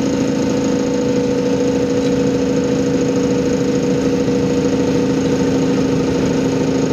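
A truck engine hums steadily while driving along a highway.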